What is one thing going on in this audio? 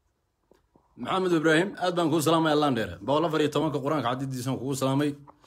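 A young man speaks loudly and with animation close to a phone microphone.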